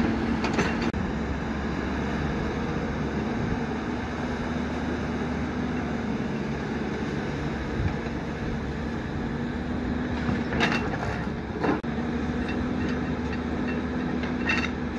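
An excavator's diesel engine rumbles steadily nearby.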